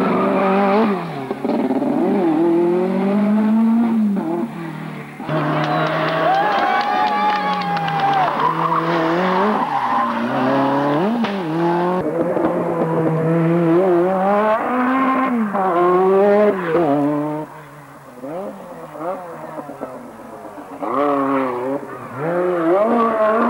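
A rally car engine revs hard, its pitch rising and falling as it speeds through bends.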